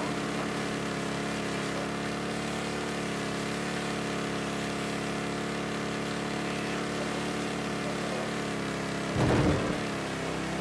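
A truck engine hums steadily as it drives along.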